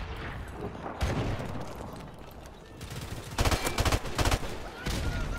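A rifle fires in bursts.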